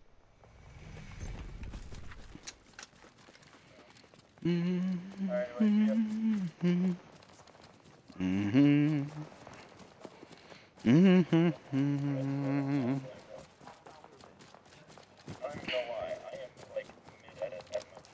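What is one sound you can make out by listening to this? Footsteps thud on a dirt path at a running pace.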